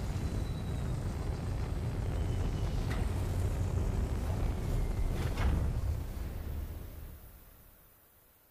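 Jet thrusters roar loudly, then fade away.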